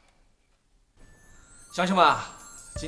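A man calls out loudly in a large room.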